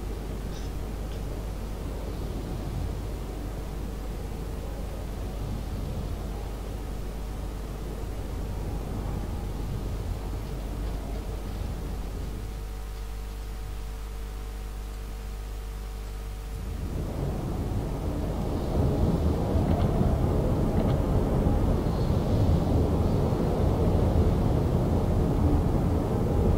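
A ship's engine rumbles steadily over the sea.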